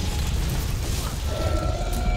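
Ice magic bursts and crackles with a bright shattering blast.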